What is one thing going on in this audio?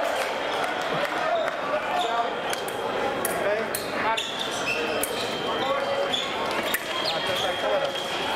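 Shoes squeak sharply on the floor.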